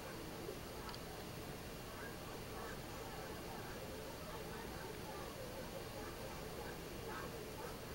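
A crowd of spectators chatters outdoors in the distance.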